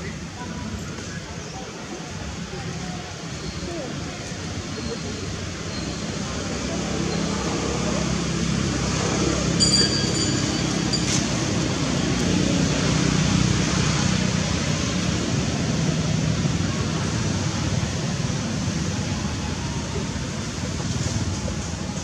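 Dry leaves rustle and crackle as a monkey handles them.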